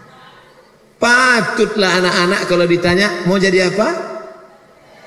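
A young man speaks loudly and with animation into a microphone.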